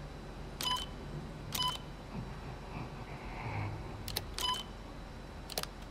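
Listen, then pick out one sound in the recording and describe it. Short electronic beeps and clicks sound a few times.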